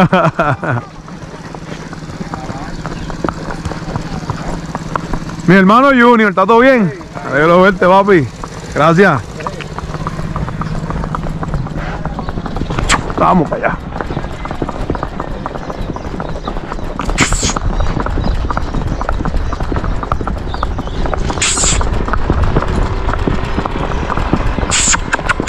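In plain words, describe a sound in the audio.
A horse's hooves clop steadily on a paved road.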